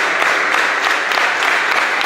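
Young men clap their hands close by.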